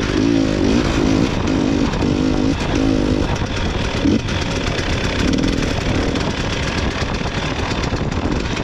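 A snowmobile engine roars and revs up and down.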